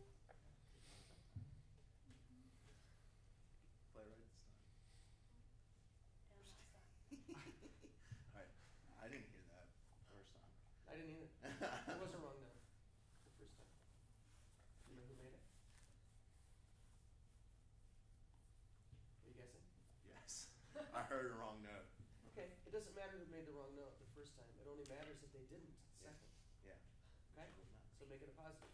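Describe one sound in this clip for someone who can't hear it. A young man speaks with animation to a group.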